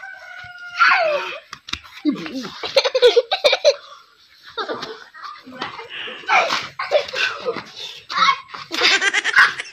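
A young boy cries out and shouts close by.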